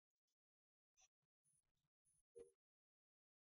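Game wires click as they snap into place.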